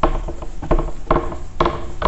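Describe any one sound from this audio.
A hand wipes a whiteboard with an eraser.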